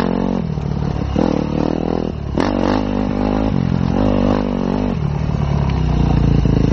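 A dirt bike engine revs loudly, rising and falling as it shifts.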